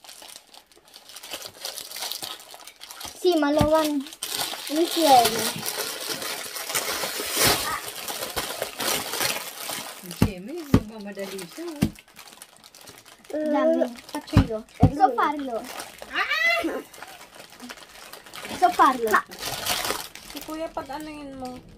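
Foil and plastic wrapping crinkle and rustle as it is torn open.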